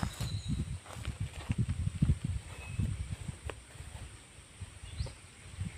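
Footsteps swish through grass close by.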